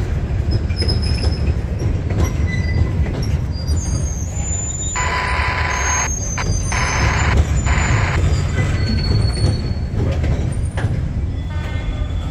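Freight cars rumble and clatter past on the rails close by.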